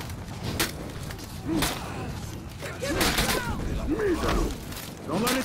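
Swords clash and clang in a fierce battle.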